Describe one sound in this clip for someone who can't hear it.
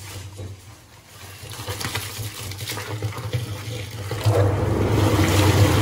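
A mixer motor hums steadily.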